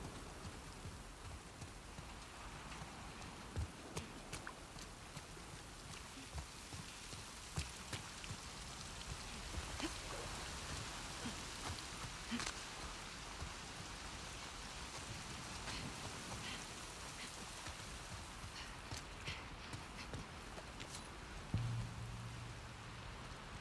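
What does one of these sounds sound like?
Rain falls steadily all around.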